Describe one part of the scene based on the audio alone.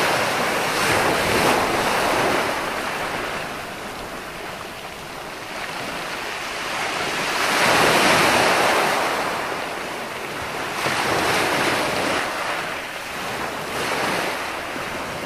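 Foamy surf washes up and hisses over the sand.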